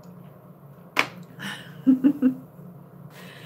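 A woman laughs softly close by.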